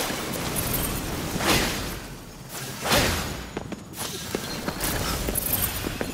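Shards shatter and clatter.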